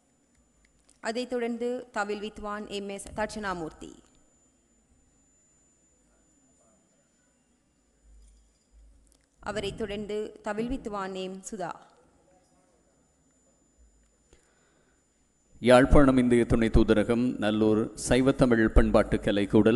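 A man announces through a loudspeaker in a large hall.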